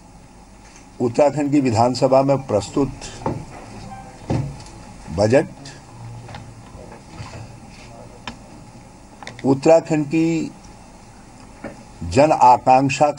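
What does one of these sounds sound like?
A middle-aged man speaks firmly into a microphone, in pauses.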